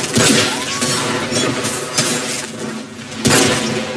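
A creature bursts apart with a wet crunch.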